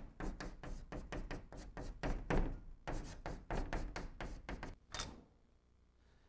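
Chalk taps and scrapes quickly on a blackboard.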